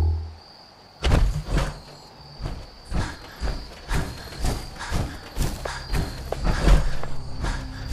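Heavy metal footsteps thud steadily on the ground.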